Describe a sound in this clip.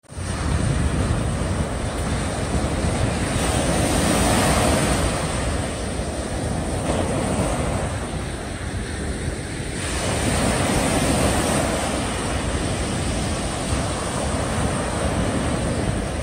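Small waves break and wash up a sandy beach.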